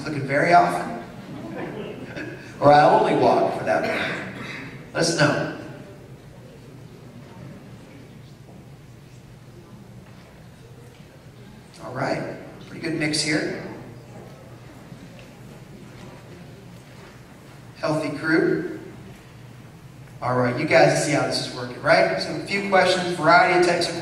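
A man speaks into a microphone over loudspeakers in a large room, pausing now and then.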